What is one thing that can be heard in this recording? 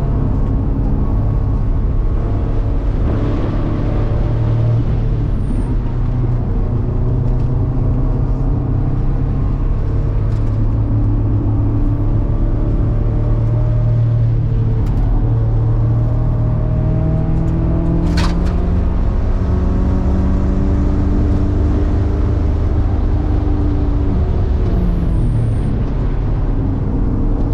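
Tyres rumble over the track surface.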